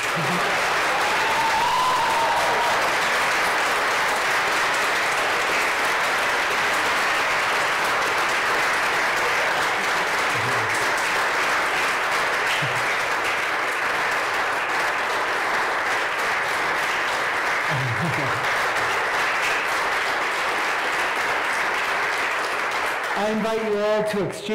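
A crowd applauds steadily in a large echoing room.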